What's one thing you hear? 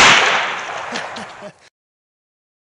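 A gunshot bangs outdoors and echoes away.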